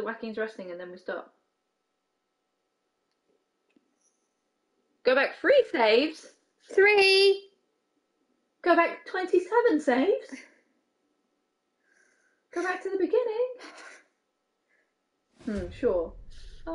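A young woman talks animatedly, heard close through a microphone.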